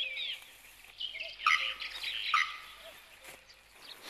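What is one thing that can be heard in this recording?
Tall grass rustles as a person walks through it.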